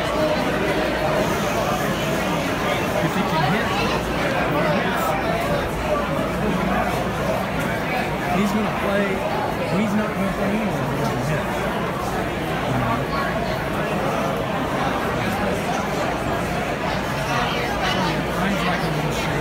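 A crowd of spectators chatters and murmurs nearby, outdoors.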